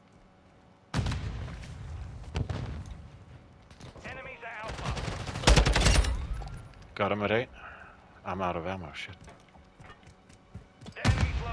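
Gunfire rings out in loud bursts.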